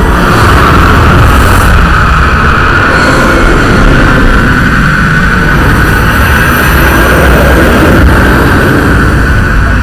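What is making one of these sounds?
A woman cries out loudly.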